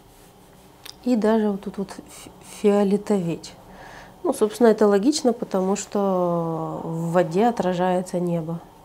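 A young woman speaks calmly into a close microphone.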